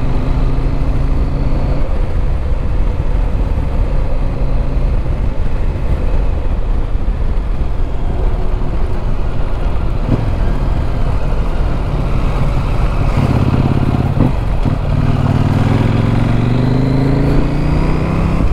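A motorcycle engine hums and revs, rising and falling in pitch.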